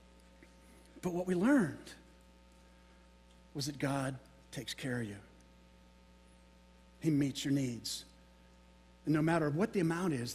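A middle-aged man speaks with animation into a microphone, in short bursts with pauses, in a large echoing room.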